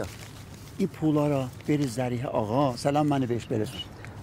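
A middle-aged man speaks earnestly at close range.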